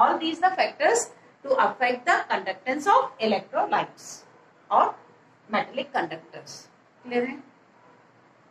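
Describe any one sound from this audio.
A middle-aged woman speaks with animation, close by.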